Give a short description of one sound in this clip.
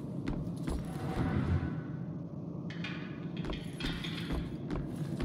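Footsteps thud slowly on wooden floorboards.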